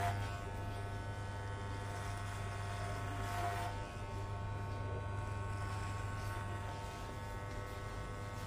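Electric hair clippers buzz steadily close by.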